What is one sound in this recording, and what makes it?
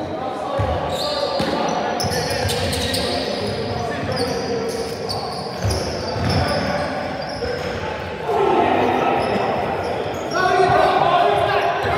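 Men shout and call out to each other during play.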